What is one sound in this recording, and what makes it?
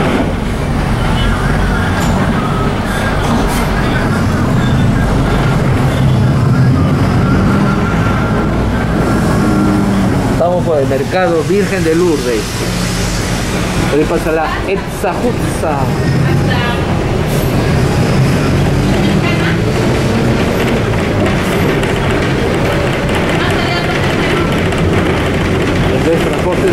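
A bus engine rumbles and drones steadily while riding.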